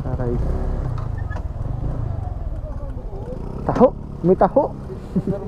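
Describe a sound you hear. A motor scooter engine idles with a low rumble.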